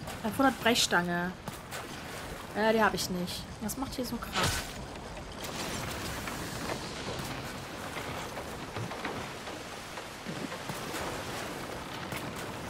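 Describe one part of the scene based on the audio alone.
Waves splash and rush against a sailing boat's hull.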